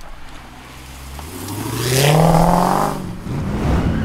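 A car engine revs up loudly, rising in pitch as the car pulls away.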